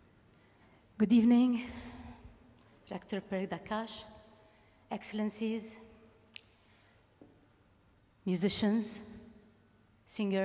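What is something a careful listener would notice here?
A woman sings with vibrato through a microphone.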